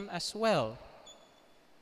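A man speaks loudly into a microphone over loudspeakers in a large echoing hall.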